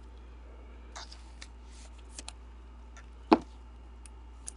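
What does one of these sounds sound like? A plastic card case clicks and taps as it is handled.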